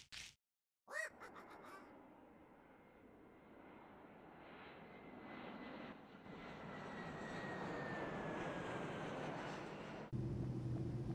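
A propeller plane drones through the sky, growing steadily louder.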